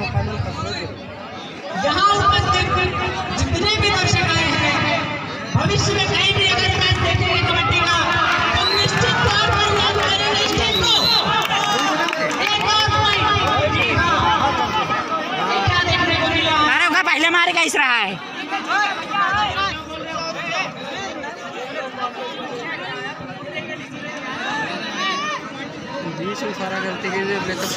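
A large crowd of spectators cheers and shouts loudly outdoors.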